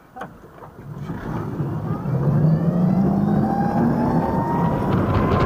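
An electric motor whines and rises in pitch as a scooter speeds up.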